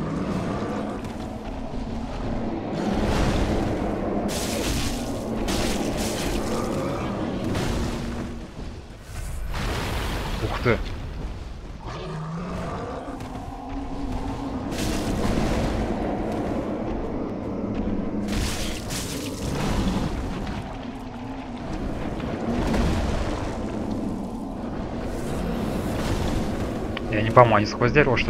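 A sword slashes and strikes a creature with heavy impacts.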